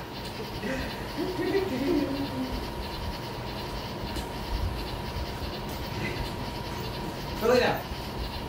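A dog's paws patter on a wooden floor.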